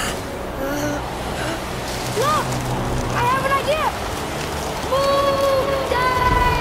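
Wind howls through a snowstorm.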